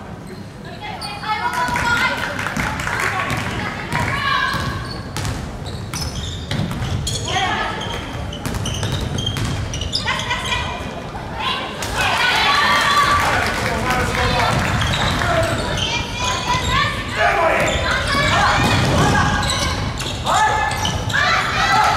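Young players and spectators shout and cheer in a large echoing hall.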